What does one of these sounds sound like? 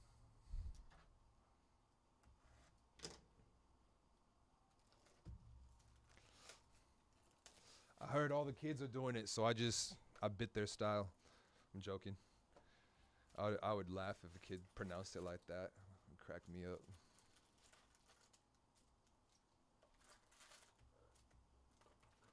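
Card packs and wrappers rustle and crinkle as they are handled.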